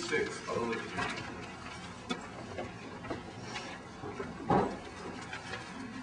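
A man speaks at a distance in a reverberant hall.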